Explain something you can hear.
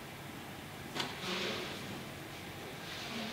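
A woman gasps sharply.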